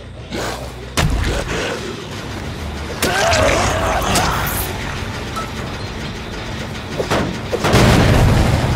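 Heavy blows land with loud thuds.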